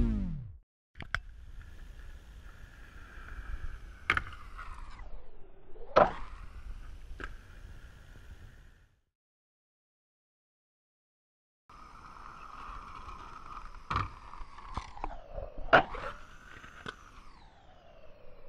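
Skateboard wheels roll over asphalt.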